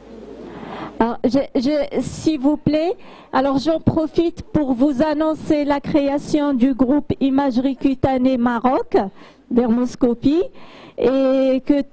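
A young woman speaks through a microphone and loudspeakers, calmly and warmly.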